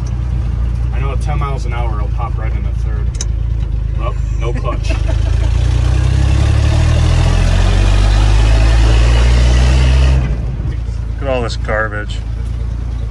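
A man talks close by over the engine.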